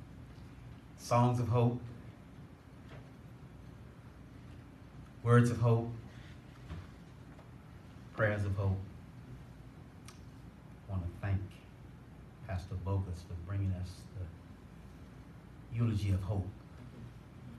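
A man speaks slowly and solemnly through a microphone and loudspeakers, in an echoing room.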